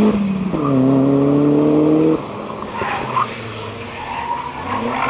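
A rally car engine revs hard nearby and then drops off.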